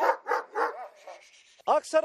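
A dog barks loudly and sharply.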